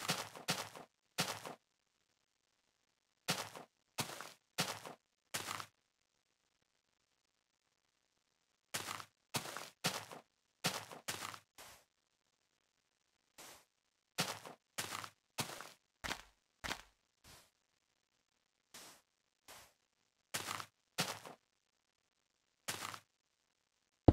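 Footsteps crunch on sand and grass in short bursts.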